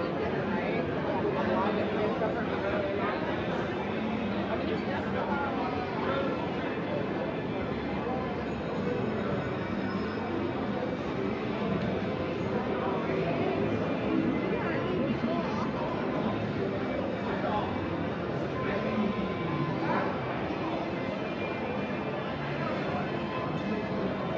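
A crowd of people chatters all around in a large, echoing hall.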